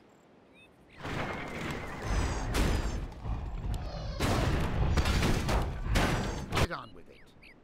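Magic crackles in a fantasy battle.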